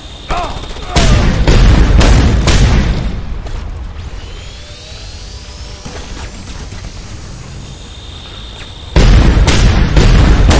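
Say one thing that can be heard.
Rapid gunfire bursts loudly in several rounds.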